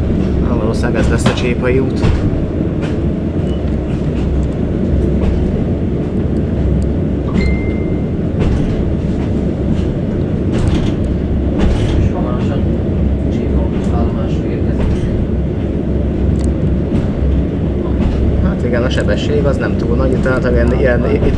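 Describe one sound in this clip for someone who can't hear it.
A vehicle rumbles steadily while driving.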